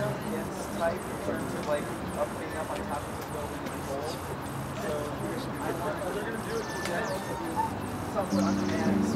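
A band of musicians plays live.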